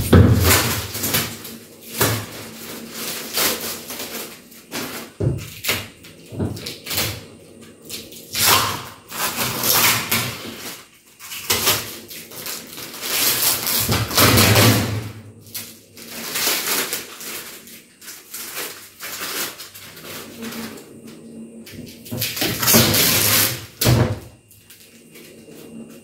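Plastic sheeting crinkles and rustles as it is handled.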